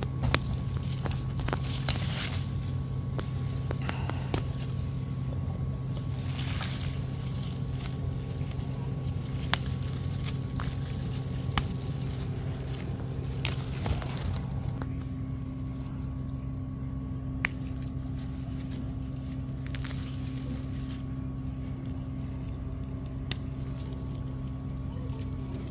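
Hands rustle through leafy plants.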